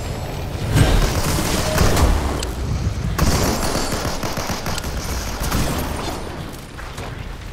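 Gunfire and explosions crackle loudly in a video game.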